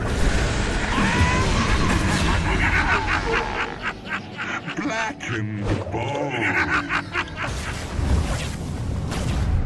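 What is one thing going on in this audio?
Magic spells crackle and burst in a busy battle.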